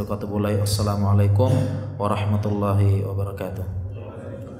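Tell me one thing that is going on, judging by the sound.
A man chants in a melodic voice into a microphone, with a room echo fading after.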